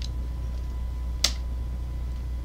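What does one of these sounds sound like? A wooden door opens with a click.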